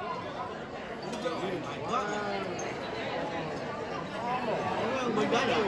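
A crowd of guests chatters in a large echoing hall.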